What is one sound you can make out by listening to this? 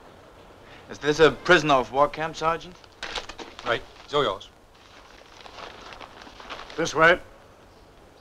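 A man answers in a stern, calm voice.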